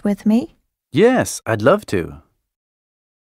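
A young man speaks clearly through a microphone.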